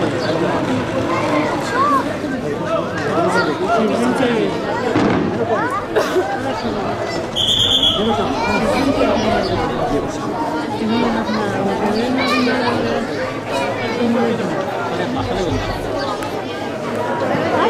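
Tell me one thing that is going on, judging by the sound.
A crowd of young men shout and chatter outdoors.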